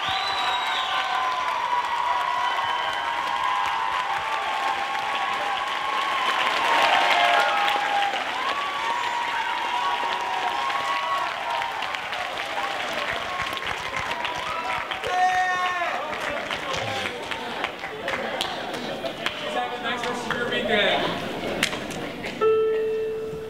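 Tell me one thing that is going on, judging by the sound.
A large crowd of young people cheers and shouts in an echoing hall.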